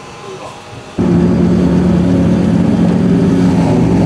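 A car engine rumbles loudly at idle.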